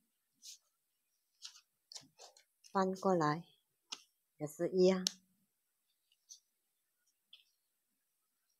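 Paper crinkles softly as it is folded and creased by hand.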